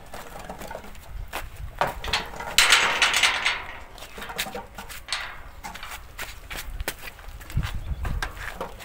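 A wheelbarrow wheel rolls and creaks over dirt.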